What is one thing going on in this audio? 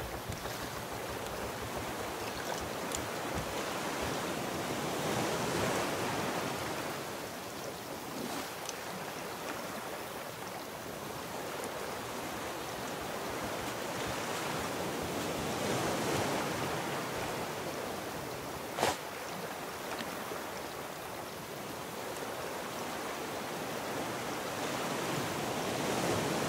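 Ocean waves wash and swell steadily all around.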